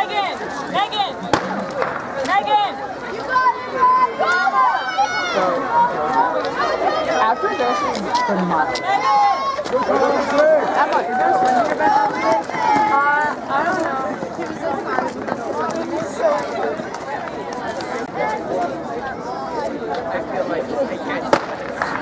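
A crowd of young spectators cheers and shouts outdoors.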